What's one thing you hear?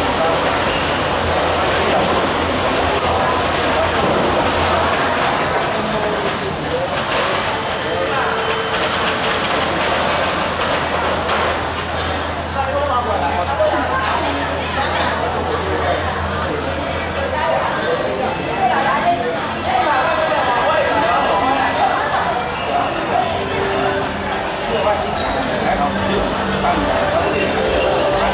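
A large crowd chatters outdoors in the rain.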